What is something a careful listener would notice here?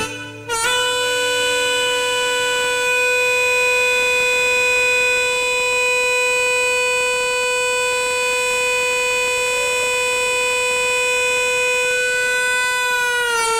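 A harmonica holds one long, steady note through a loudspeaker.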